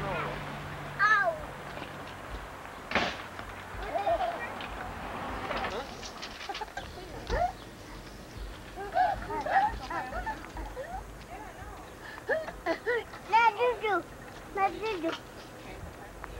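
Young children chatter and squeal outdoors.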